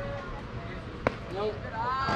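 A bat cracks against a baseball outdoors.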